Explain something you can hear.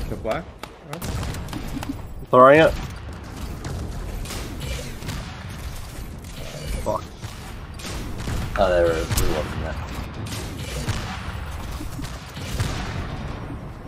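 Energy guns fire in rapid bursts.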